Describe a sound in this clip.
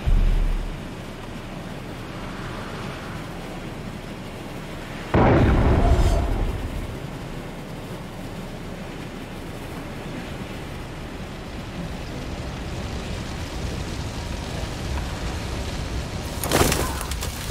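Wind rushes steadily past a gliding flyer.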